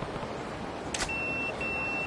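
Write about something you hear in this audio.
A pager button clicks once.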